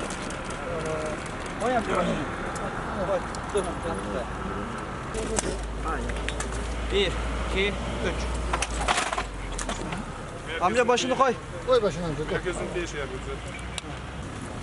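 Several men talk urgently nearby.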